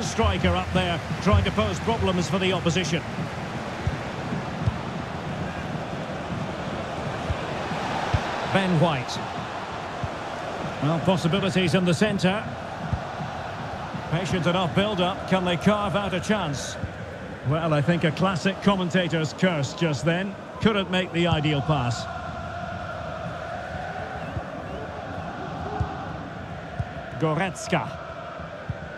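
A football thuds as players kick it.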